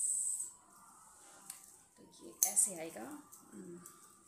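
Metal jewellery chains jingle softly.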